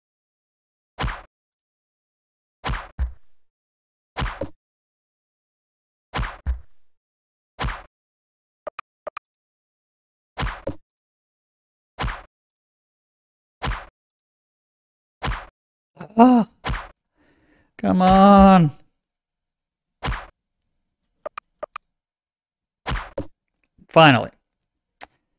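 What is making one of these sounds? Swords clash and strike in short, sharp hits again and again.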